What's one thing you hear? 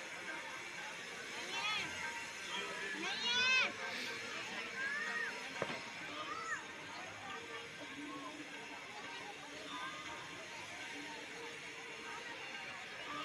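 A crowd murmurs faintly in the distance outdoors.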